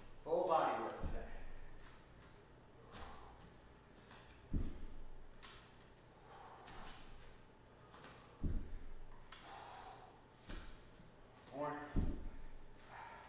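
Bare feet thump on a wooden floor with each lunge.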